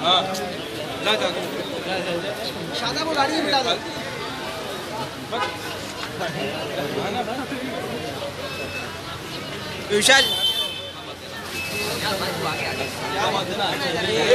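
A crowd of men talk and call out close by.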